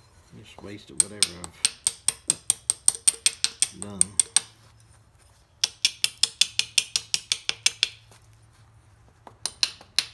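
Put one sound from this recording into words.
A small hammer taps rapidly and sharply on a metal punch.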